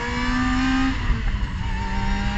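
A racing car shifts up a gear, with a sudden drop in engine pitch.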